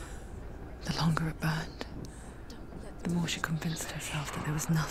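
A young woman speaks softly and tensely, close by.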